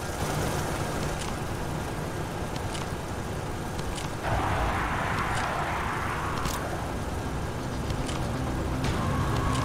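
Short clicks sound as items are picked up, again and again.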